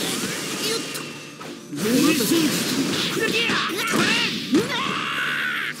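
Heavy blows thud.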